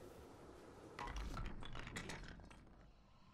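Wooden blocks tumble and clatter onto a table.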